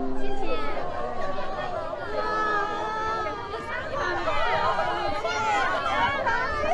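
A crowd of young women chatters and calls out excitedly close by.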